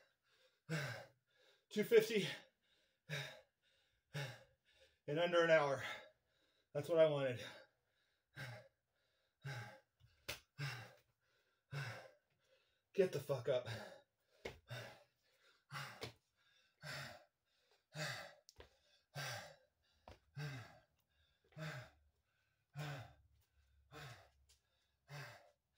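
A man calls out in short, regular bursts of effort, close by.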